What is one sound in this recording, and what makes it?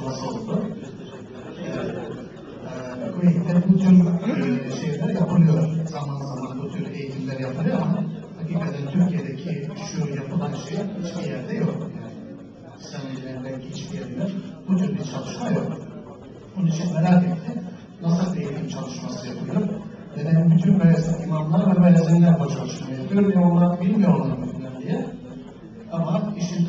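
An older man speaks with animation into a microphone, heard through a loudspeaker in a room.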